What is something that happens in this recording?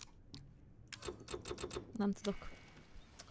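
Menu selections click and beep in quick succession.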